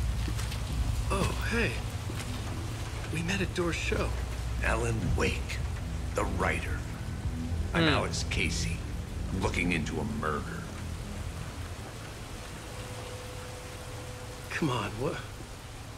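A man speaks calmly and quietly, close by.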